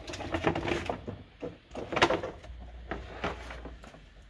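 A plastic panel thumps and rattles as it is handled.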